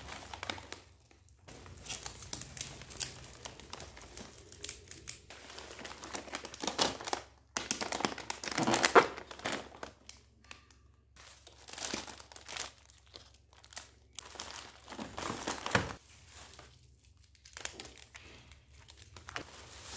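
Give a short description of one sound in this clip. A plastic bag rustles and crinkles as hands untie and open it.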